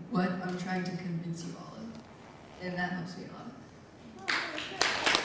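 A young woman speaks calmly into a microphone in a reverberant hall.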